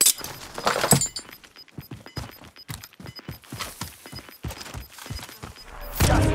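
Footsteps crunch quickly over dry ground.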